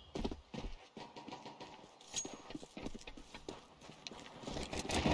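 Footsteps thud quickly across hard stone.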